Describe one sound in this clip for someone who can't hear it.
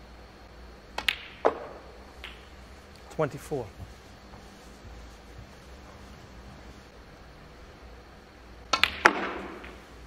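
Snooker balls click sharply together on the table.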